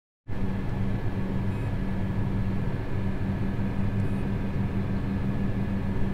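A tractor engine idles with a steady low rumble.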